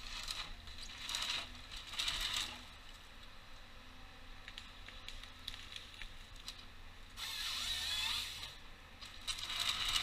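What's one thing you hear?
Hydraulics on a forestry machine whine and hiss in short bursts.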